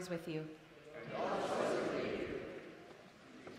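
A congregation murmurs a spoken response together.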